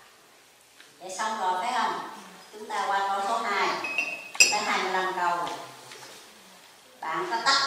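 An elderly woman speaks calmly into a microphone.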